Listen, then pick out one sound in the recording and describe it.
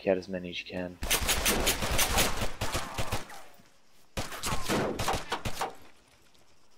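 Rapid gunshots crack loudly in bursts.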